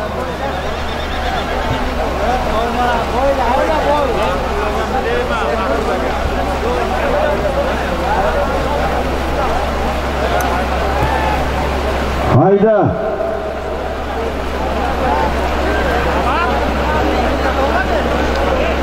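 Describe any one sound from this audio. A large crowd of men shouts and calls out outdoors.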